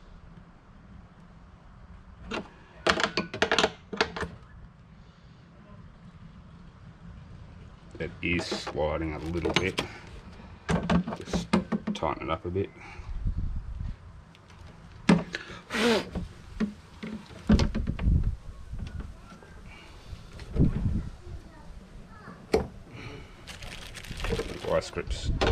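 A hard plastic container creaks and knocks as it is handled.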